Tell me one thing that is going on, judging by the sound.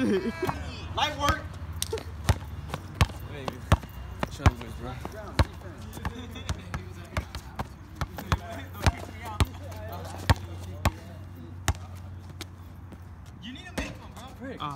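A basketball bounces repeatedly on hard pavement outdoors.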